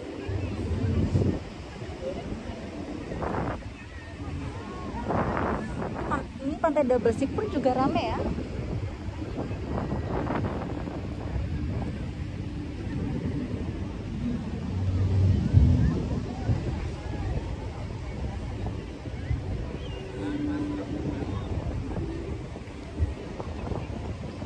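People chatter in the distance.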